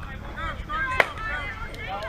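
A bat cracks sharply against a softball.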